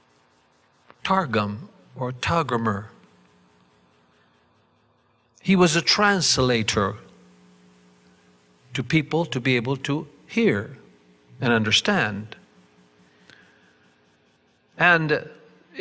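An elderly man speaks calmly into a microphone in bursts, with pauses between phrases.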